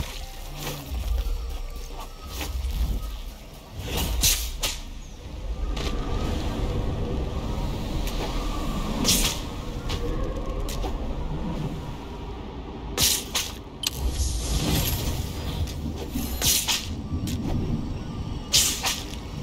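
Footsteps thud quickly on sand.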